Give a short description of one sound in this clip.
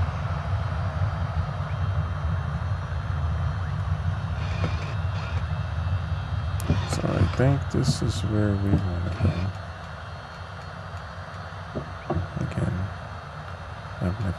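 A propeller engine drones steadily, growing quieter near the end.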